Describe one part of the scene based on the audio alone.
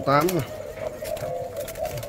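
A dove flaps its wings against a wire cage.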